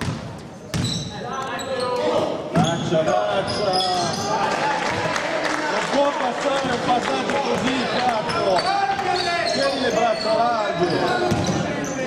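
Sneakers squeak on a hardwood floor in a large echoing hall.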